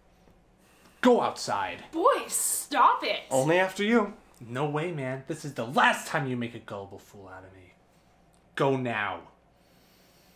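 A young man speaks angrily up close.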